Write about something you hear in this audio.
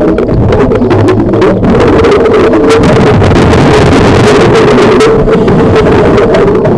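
Air bubbles gurgle and burble loudly underwater.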